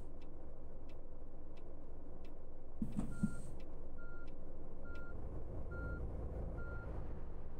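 A bus engine hums low and steady.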